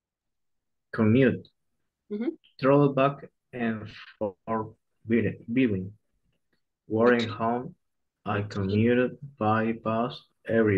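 A man speaks calmly and clearly into a microphone, close up.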